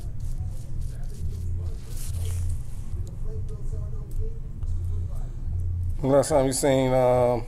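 A razor scrapes through a beard.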